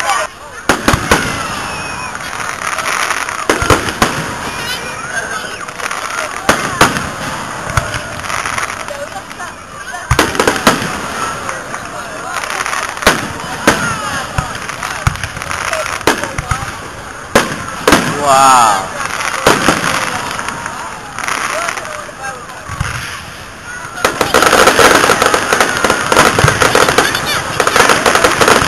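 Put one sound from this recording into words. Firework rockets whistle and whoosh upward.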